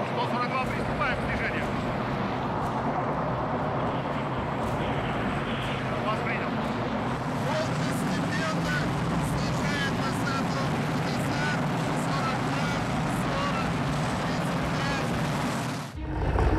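A man speaks into a handheld radio, giving short commands.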